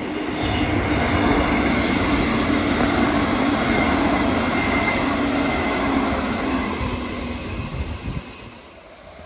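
An electric train rumbles past close by and moves away.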